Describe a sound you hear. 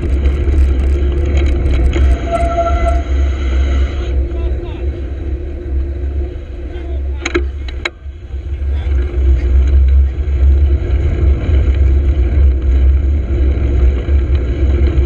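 Wind rumbles loudly against a moving bike.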